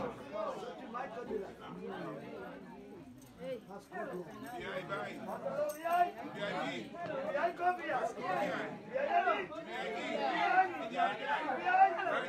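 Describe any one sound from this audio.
Many men and women talk and call out over one another close by, growing louder.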